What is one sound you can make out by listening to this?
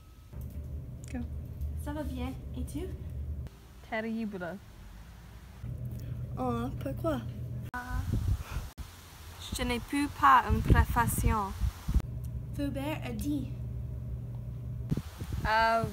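A second young woman talks on a phone with animation, close by.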